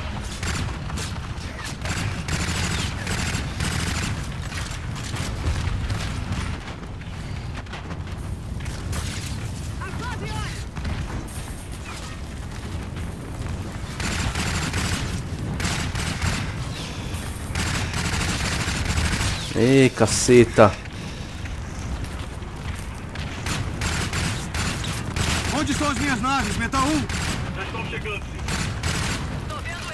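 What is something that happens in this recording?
Rapid gunfire rattles again and again.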